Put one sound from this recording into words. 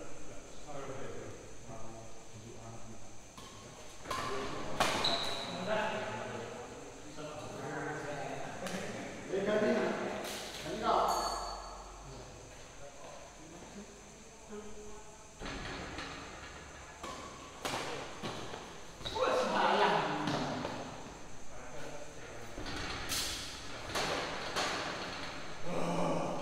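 Men talk and call out in an echoing hall.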